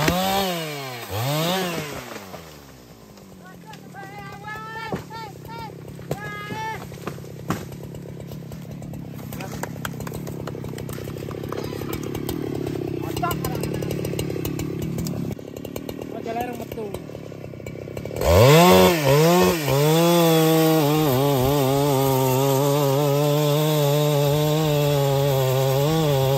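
A chainsaw revs loudly and cuts through wood, close by.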